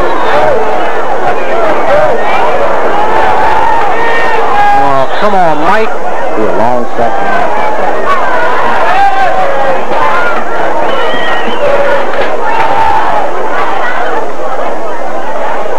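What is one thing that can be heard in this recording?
Young men on the sideline shout and call out.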